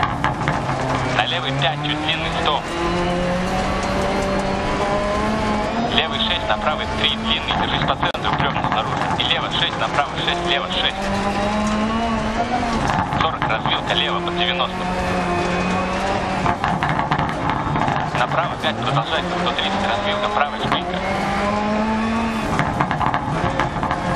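A rally car engine revs hard, rising and falling in pitch as the gears change.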